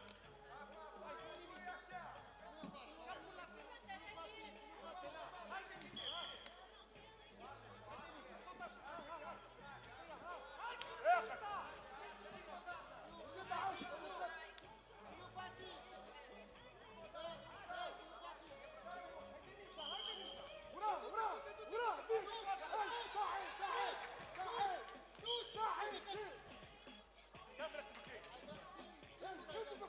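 Men shout and call out in a large echoing hall.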